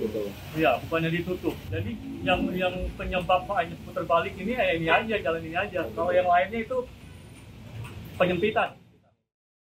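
A man speaks calmly into a microphone, close by.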